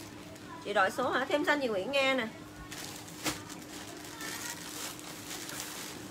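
A plastic bag crinkles in a woman's hands.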